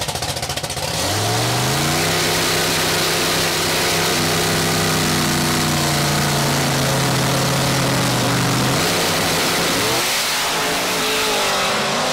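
Race car engines roar loudly and steadily as the cars launch and speed away.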